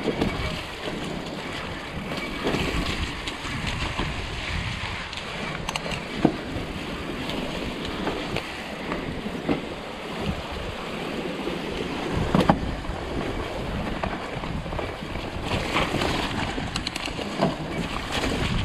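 A bicycle rattles and clunks over bumps.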